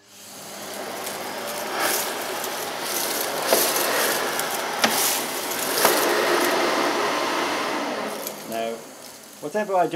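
A vacuum cleaner whirs steadily as it sucks at a carpet.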